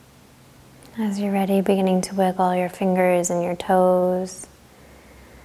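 A woman speaks slowly and calmly nearby.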